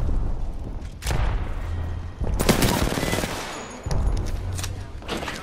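Gunfire bursts loudly in quick shots.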